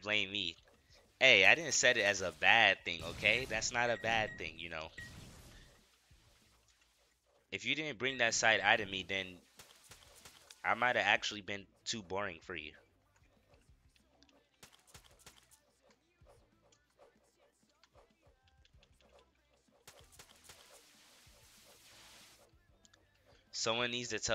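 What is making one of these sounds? Magic spells zap and crackle in quick bursts.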